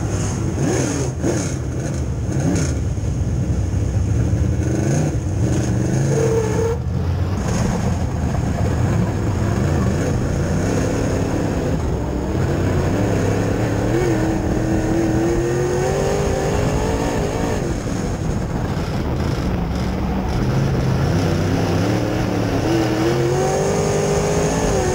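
Dirt and clods rattle against the car's body.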